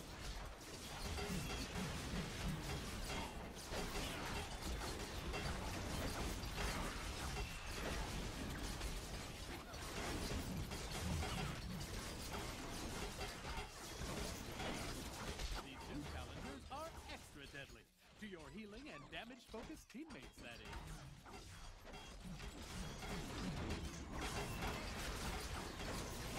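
Magic blasts and weapon hits crackle and thump in a fast fight.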